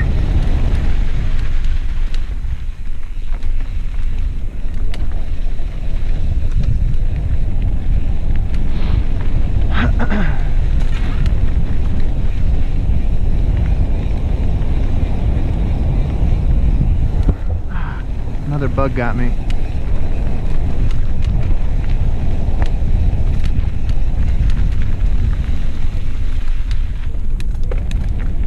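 Wind rushes past a fast-moving rider outdoors.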